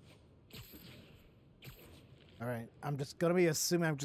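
A rope line zips and whooshes through the air.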